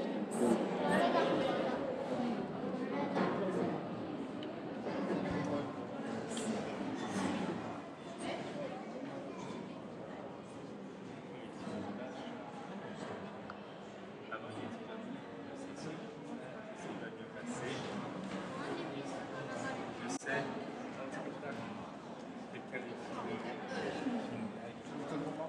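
A crowd murmurs and chatters around the listener.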